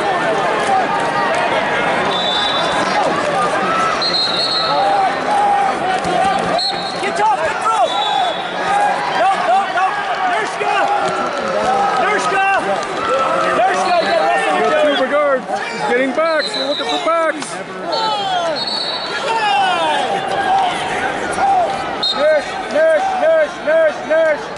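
A large crowd cheers and shouts throughout a big echoing hall.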